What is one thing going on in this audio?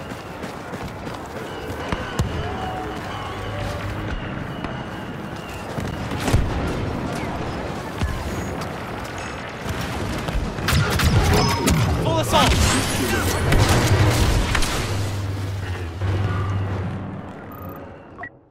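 Blaster guns fire in rapid bursts.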